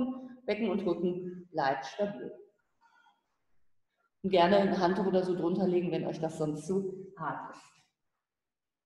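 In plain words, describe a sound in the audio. A woman speaks calmly nearby, in short phrases with pauses.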